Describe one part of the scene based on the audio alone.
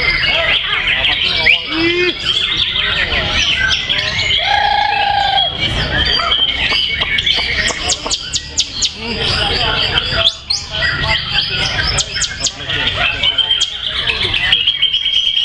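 A songbird sings loud, rapid chirping and warbling phrases close by.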